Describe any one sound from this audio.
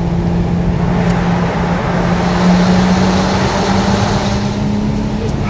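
An oncoming car whooshes past.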